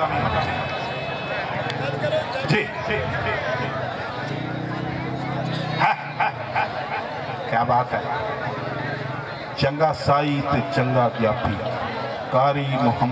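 A man comments loudly over a loudspeaker.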